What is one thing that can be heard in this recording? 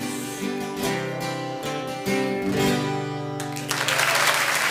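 Two acoustic guitars play a lively tune together.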